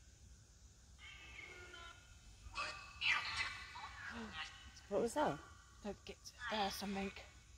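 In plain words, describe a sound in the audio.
Two women talk with animation close by.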